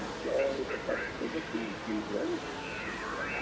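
An animated talking figure speaks in a recorded voice through a small speaker.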